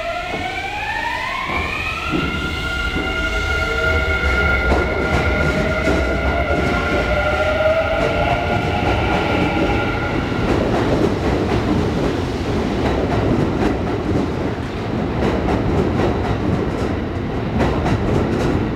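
A train's wheels rumble and clatter on the rails, growing louder and faster.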